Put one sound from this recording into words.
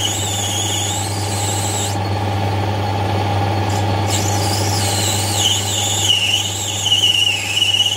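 A metal lathe runs with a steady, low hum.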